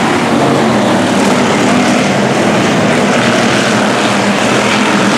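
Several race car engines roar loudly and steadily close by.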